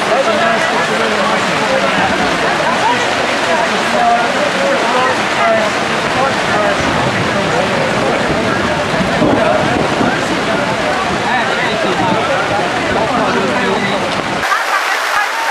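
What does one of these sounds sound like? A crowd of men and women chatters and laughs at close range.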